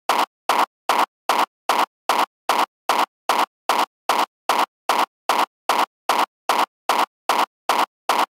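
A short burst of electronic music repeats in a fast, steady loop.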